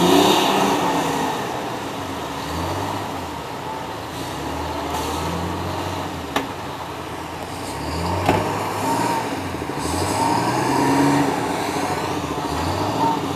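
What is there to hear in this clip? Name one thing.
A diesel engine of a heavy machine rumbles and drones steadily.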